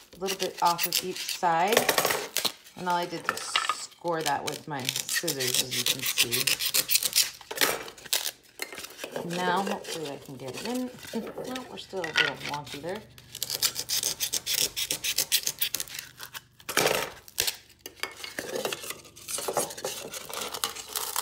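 Stiff paper rustles and crinkles as it is handled.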